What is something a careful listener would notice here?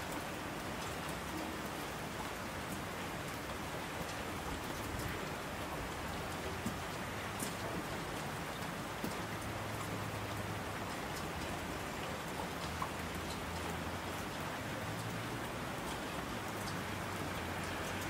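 Streams of water rush down a slope.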